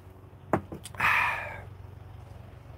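A man blows a kiss.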